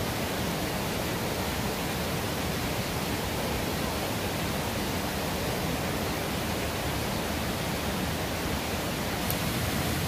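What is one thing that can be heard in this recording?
Leaves and branches rustle as a person pushes through dense undergrowth.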